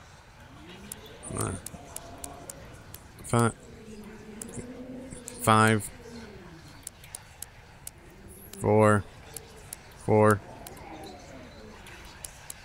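A combination lock's dials click as they turn.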